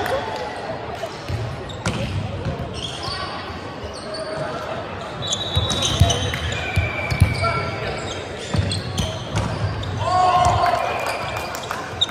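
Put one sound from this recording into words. Players' voices call out and chatter in a large echoing hall.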